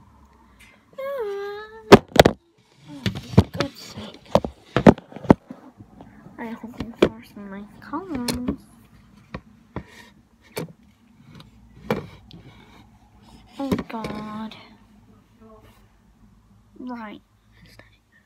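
A girl talks with animation close to the microphone.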